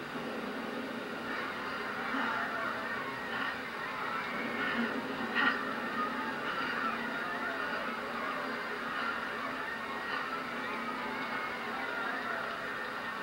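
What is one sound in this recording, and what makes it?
Video game music and effects play through a television speaker.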